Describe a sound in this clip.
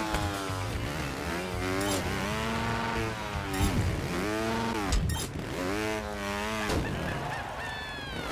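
A motorbike engine revs up and down repeatedly.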